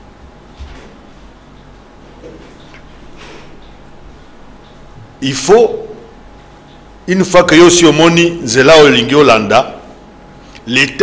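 An elderly man speaks emphatically into a microphone.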